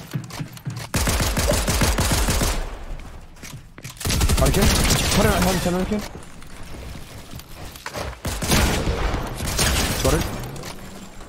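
Rapid gunfire bursts out in loud volleys.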